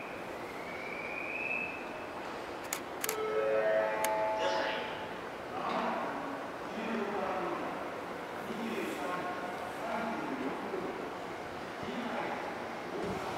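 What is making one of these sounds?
A train rolls slowly along the tracks with a low rumble.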